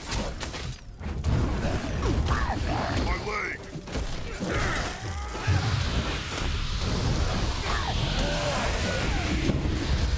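Magic spells whoosh and shimmer in a game battle.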